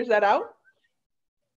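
A woman exclaims briefly over an online call.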